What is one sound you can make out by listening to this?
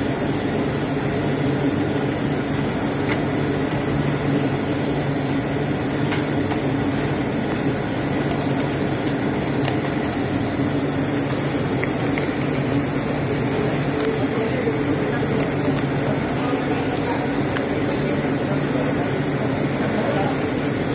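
Machinery hums steadily throughout a large echoing hall.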